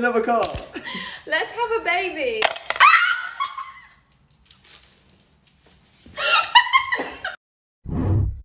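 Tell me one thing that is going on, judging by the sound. A young woman talks excitedly and laughs nearby.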